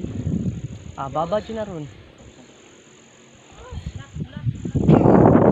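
A young woman speaks nearby with animation.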